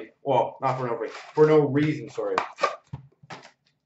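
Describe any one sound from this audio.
Cardboard boxes rustle and tap as hands handle them.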